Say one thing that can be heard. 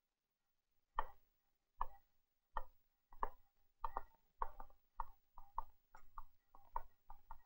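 Footsteps walk away across a hard floor.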